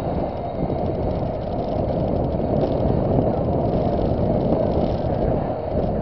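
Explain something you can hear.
Tyres rumble steadily on the road.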